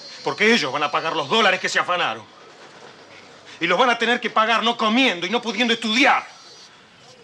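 A man speaks forcefully and with anger, close by.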